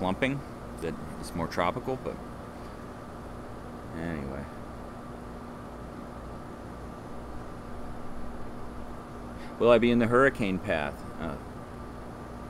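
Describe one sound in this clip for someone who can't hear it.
A man speaks calmly and close by in short phrases, with pauses.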